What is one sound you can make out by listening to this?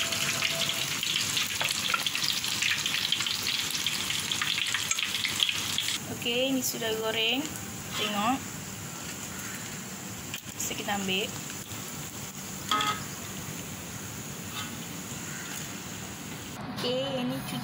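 Hot oil sizzles and bubbles steadily, loudest at first.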